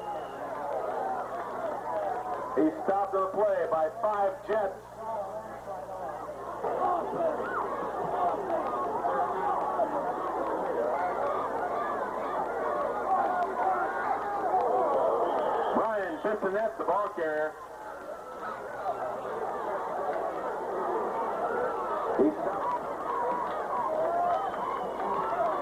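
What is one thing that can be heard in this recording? A crowd cheers and chatters steadily outdoors.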